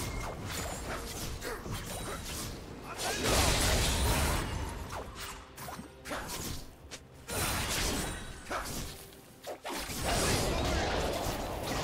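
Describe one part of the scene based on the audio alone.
Magic spells whoosh and crackle as figures clash in a video game battle.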